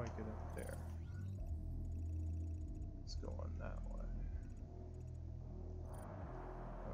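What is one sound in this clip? Soft menu clicks and beeps come in quick succession.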